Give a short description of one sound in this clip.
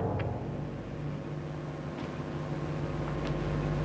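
A car door handle clicks as it is tried.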